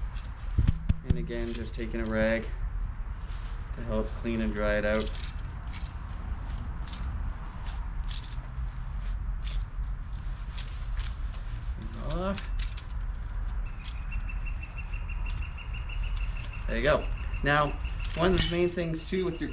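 A middle-aged man talks calmly and close by, his voice slightly muffled.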